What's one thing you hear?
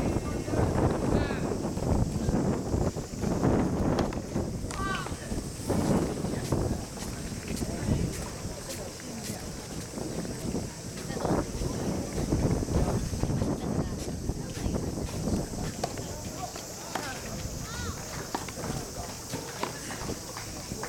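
Brushes and mats drag and scrape across a sandy court.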